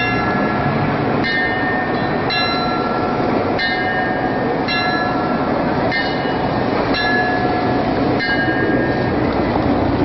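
Bells ring out in a slow, even series of chimes, each one ringing on.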